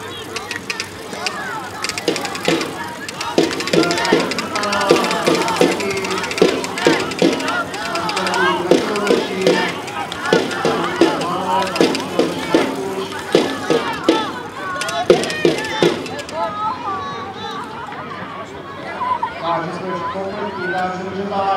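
Adult spectators cheer and call out from the sideline.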